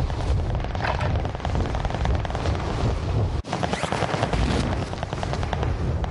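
Wind roars loudly past a falling skydiver.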